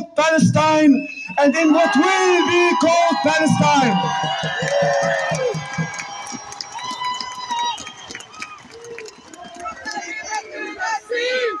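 A young man chants loudly into a microphone, heard through loudspeakers outdoors.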